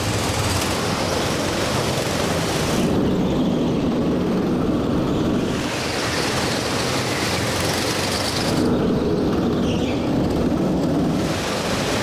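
Go-kart engines buzz loudly as karts race past.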